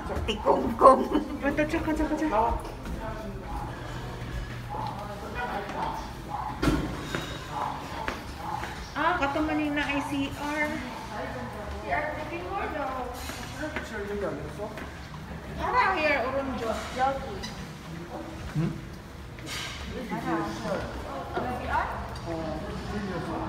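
Men and women talk nearby with animation.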